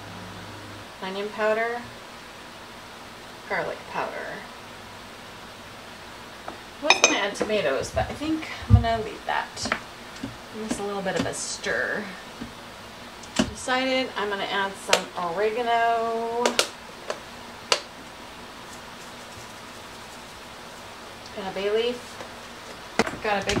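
A woman talks calmly close by, in short bursts.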